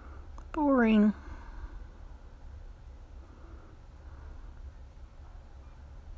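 Wooden beads click softly against each other.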